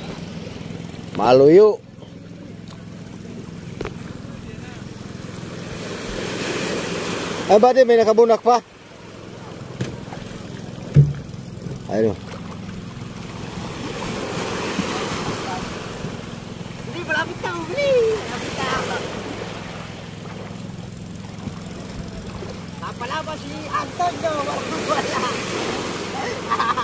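Shallow water splashes as a man drags a plastic box through it.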